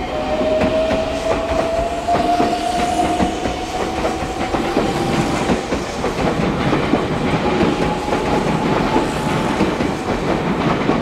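A train's motor whines with a rising pitch.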